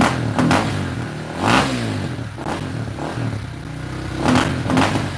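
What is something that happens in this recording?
A dirt bike engine revs up in short, sharp bursts.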